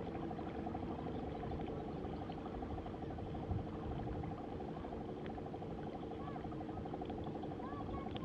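Water laps and splashes against the side of a boat.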